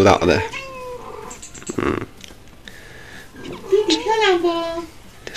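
A kitten meows in a high, thin voice.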